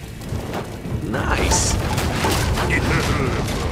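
A loud explosion bursts and fire roars.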